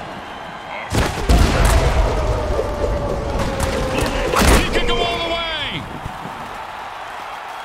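Armoured players crash together in a heavy tackle.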